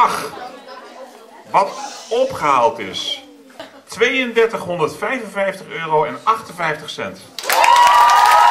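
A middle-aged man speaks through a microphone, reading out over loudspeakers.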